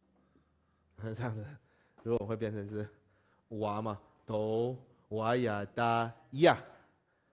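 A man speaks calmly and clearly in short phrases, close by.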